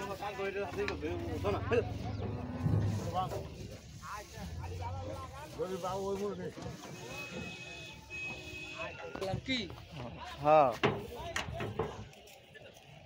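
Men talk loudly nearby.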